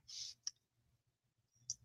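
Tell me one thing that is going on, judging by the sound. Paper slides softly across a mat.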